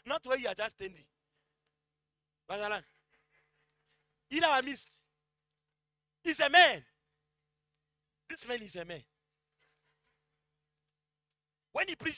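A man preaches with animation through a microphone, in short bursts with pauses.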